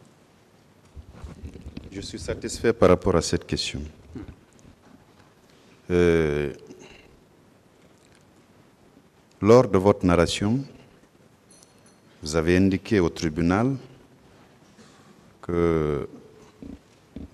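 A man speaks slowly into a microphone, with long pauses.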